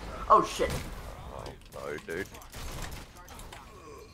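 Gunshots crack and an explosion bursts.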